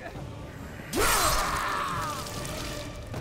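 A blade slices through flesh with a wet, heavy impact.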